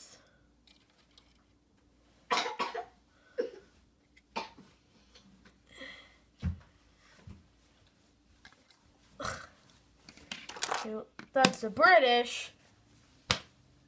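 Plastic toy figures click and rattle as a hand moves them.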